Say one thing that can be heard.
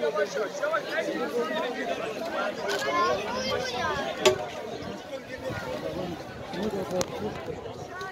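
A large crowd chatters outdoors in a steady murmur.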